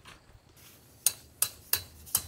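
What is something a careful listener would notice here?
A mallet knocks a tent peg into the ground in sharp, even blows.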